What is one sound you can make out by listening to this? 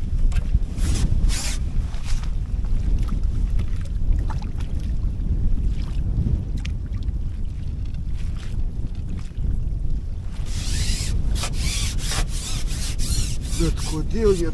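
Water splashes as a landing net dips in.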